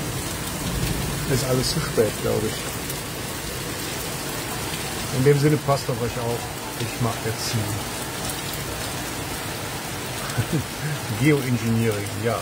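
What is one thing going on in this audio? Heavy rain pours down and splashes on wet cobblestones outdoors.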